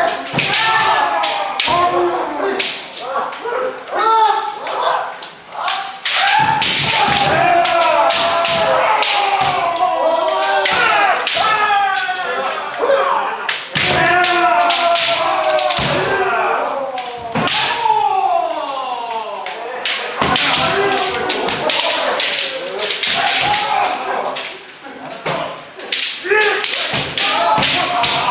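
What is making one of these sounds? Many fencers shout loudly and sharply in a large echoing hall.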